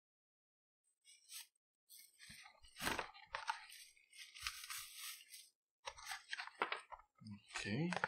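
A cardboard box rustles and scrapes as hands open it.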